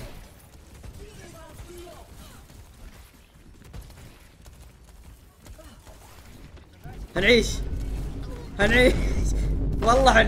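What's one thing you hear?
Gunfire and energy blasts crackle in a video game.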